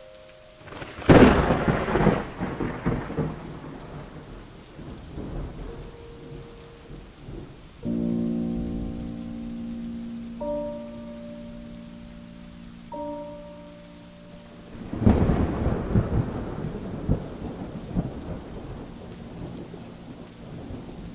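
Heavy rain pours down and splashes.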